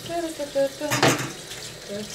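A utensil clinks against a pan.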